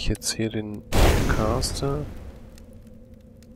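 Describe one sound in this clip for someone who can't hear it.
A fireball bursts with a loud roaring whoosh that quickly fades.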